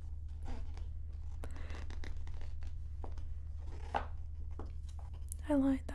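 Hands rub and smooth glossy paper with a soft swishing.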